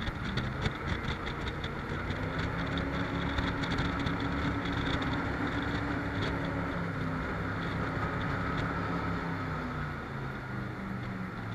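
Water rushes and splashes against a boat's hull.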